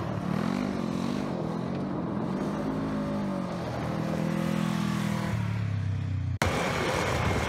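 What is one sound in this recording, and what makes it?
A small off-road vehicle's engine revs and drones as it drives past.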